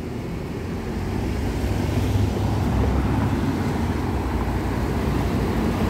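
A car drives past close by on a city street.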